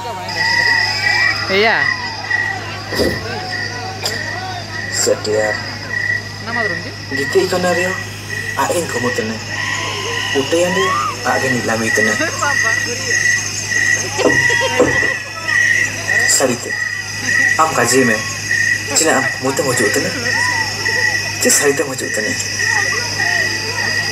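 A man speaks dramatically through loudspeakers in a large hall.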